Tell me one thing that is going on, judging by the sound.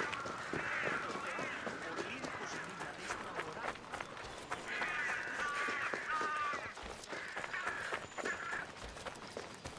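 Birds chirp and twitter nearby.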